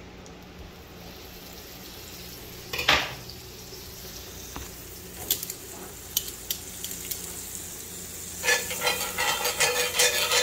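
Butter sizzles and crackles in a hot pan.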